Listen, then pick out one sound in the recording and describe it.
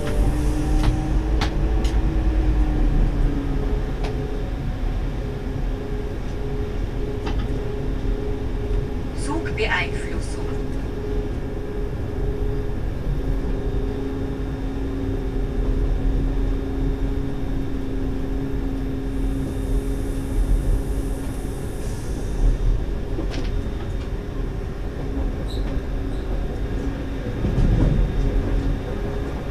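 Train wheels hum and whine on the track.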